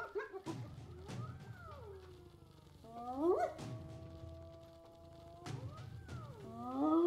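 A hyena gives loud rising whoops.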